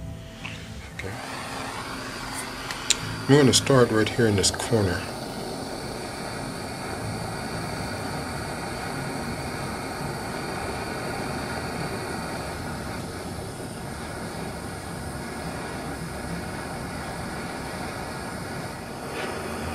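A gas torch flame roars steadily.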